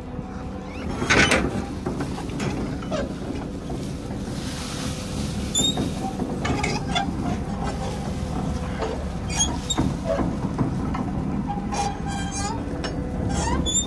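Chopped grass pours and hisses from a feed wagon's belt onto the ground.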